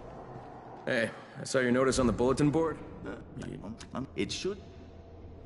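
A man speaks in a weary, low voice.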